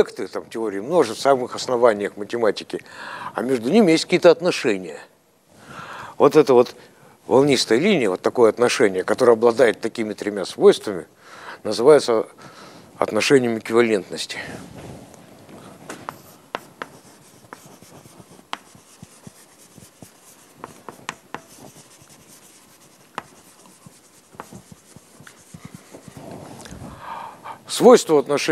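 An elderly man lectures with animation.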